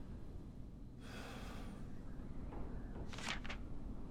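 A sheet of paper rustles as a page turns.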